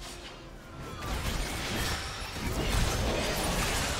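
Magical spell effects crackle and whoosh during a fight.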